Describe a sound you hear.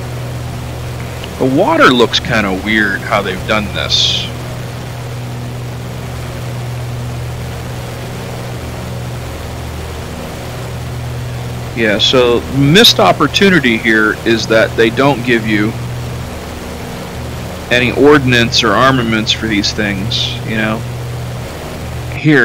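A propeller plane's engine drones steadily.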